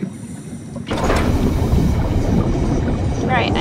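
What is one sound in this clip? A heavy door slides open with a loud rumbling rush.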